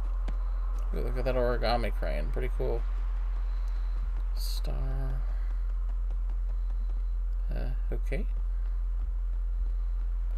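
Light footsteps patter quickly on a hard path.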